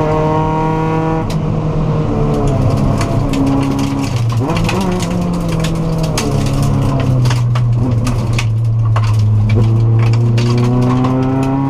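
Loose gravel pings and rattles against the underside of a car.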